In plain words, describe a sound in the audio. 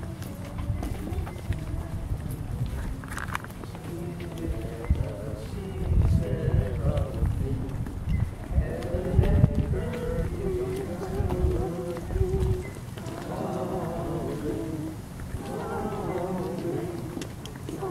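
A crowd of men and women sings a hymn together outdoors.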